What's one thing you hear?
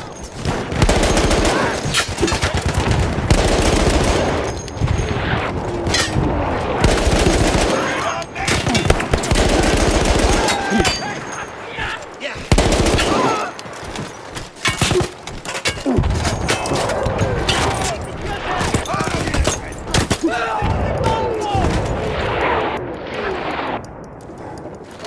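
A machine gun fires in rapid, loud bursts.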